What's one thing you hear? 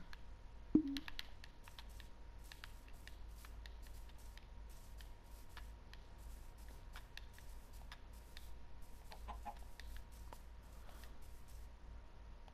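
Footsteps crunch on grass at a steady walk.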